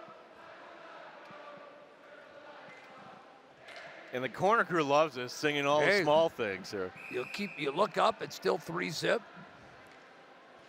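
A crowd murmurs in a large echoing arena.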